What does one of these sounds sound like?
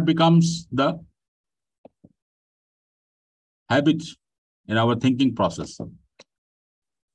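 A man speaks calmly into a microphone over an online call, pausing between phrases.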